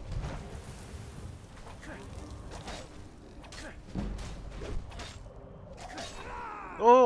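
Metal blades clang and thud in a fight.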